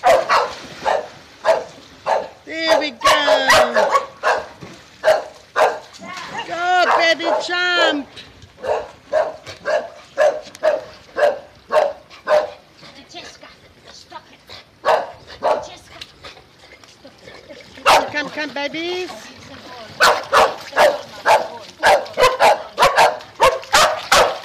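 Water splashes as a dog jumps in and swims.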